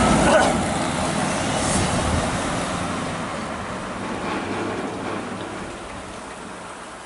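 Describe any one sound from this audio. A car engine hums close by and pulls away.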